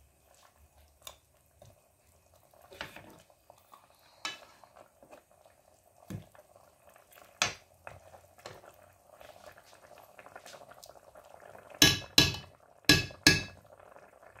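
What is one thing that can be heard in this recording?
A metal spoon clinks and scrapes against a metal pot as a stew is stirred.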